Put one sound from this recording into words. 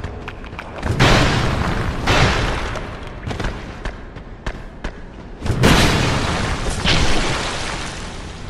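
A heavy sword swings through the air with loud whooshes.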